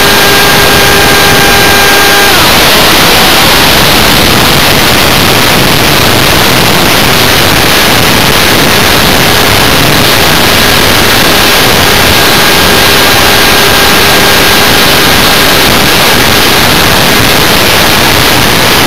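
Wind roars loudly past a small model aircraft in flight.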